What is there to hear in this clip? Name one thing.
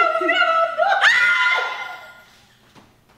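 A woman shrieks loudly in delight.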